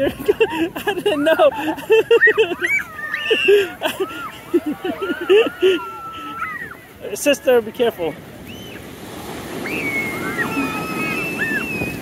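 Young children shout and squeal playfully close by.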